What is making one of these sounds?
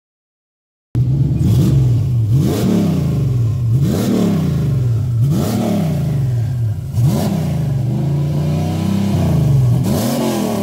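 A car engine idles loudly and revs up and down over and over.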